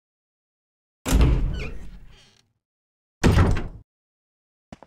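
A heavy wooden door creaks open slowly.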